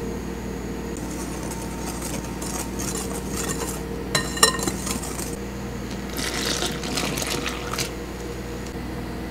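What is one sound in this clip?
A whisk rustles and scrapes through dry flour in a glass bowl.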